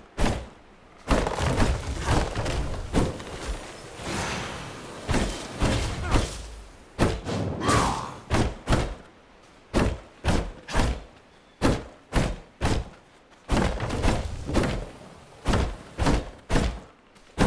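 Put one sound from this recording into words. An axe chops into a tree trunk with sharp, repeated knocks.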